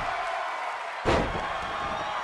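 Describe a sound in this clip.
A body slams hard onto a wrestling mat with a loud thud.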